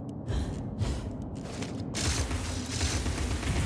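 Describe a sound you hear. A wooden crate smashes apart with a crash.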